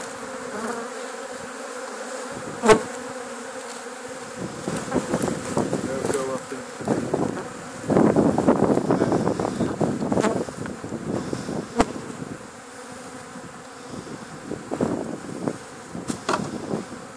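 Bees buzz close by.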